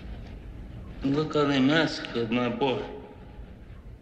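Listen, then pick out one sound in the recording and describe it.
An elderly man speaks in a hoarse, emotional voice.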